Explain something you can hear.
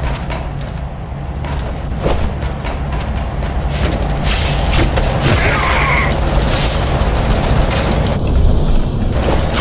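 A grappling cable zips out and snaps taut.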